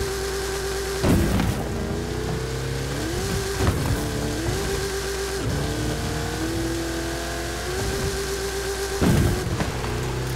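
A vehicle lands with heavy thuds after jumps.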